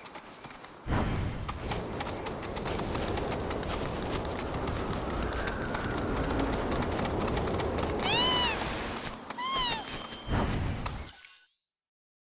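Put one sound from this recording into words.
A large bird's feet thud quickly on the ground as it runs.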